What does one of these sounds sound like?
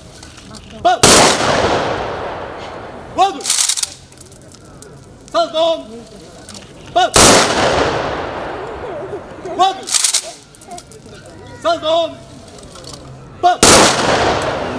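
Three rifle volleys crack loudly and echo off the surrounding buildings.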